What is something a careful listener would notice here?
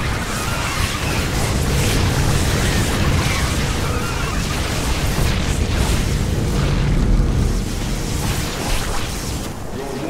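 Explosions rumble and boom.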